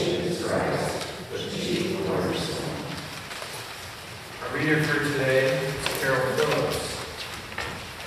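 A man reads out calmly into a microphone in an echoing hall.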